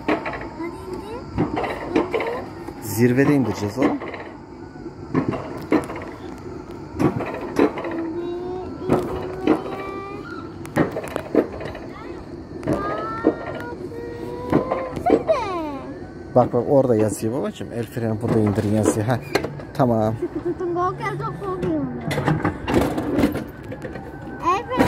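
A coaster car rattles and clatters along a metal track.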